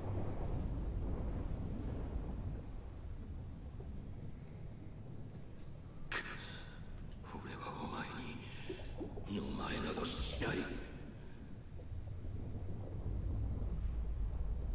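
A deep underwater rumble drones.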